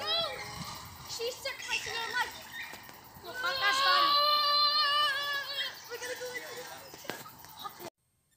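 Young children shout and squeal with excitement nearby.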